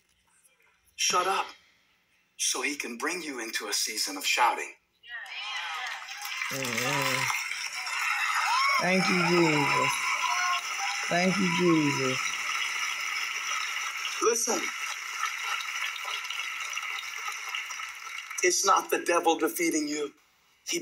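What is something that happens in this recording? A man speaks with animation through a microphone, heard through small speakers.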